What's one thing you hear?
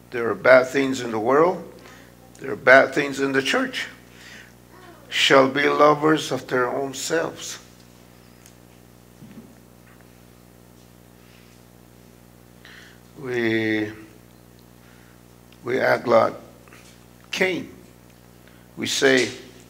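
A middle-aged man speaks slowly and earnestly through a microphone, with pauses.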